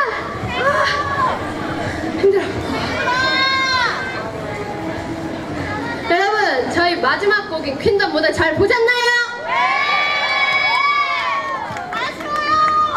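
Young women talk and cheer with animation into microphones over a loudspeaker, outdoors.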